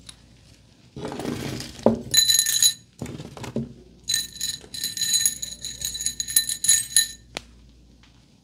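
Small hair accessories rattle and clink on a table close by.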